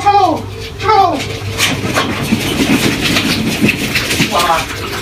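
Small puppies' paws patter quickly across a hard floor.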